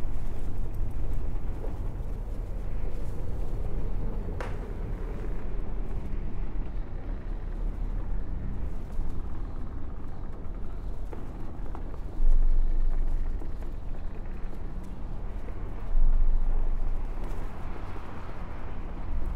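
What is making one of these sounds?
Huge hovering machines hum with a deep, steady rumble.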